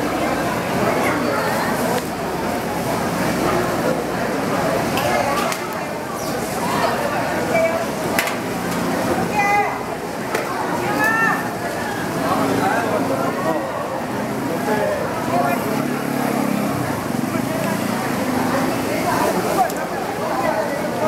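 Men and women chatter nearby in a busy, lively crowd.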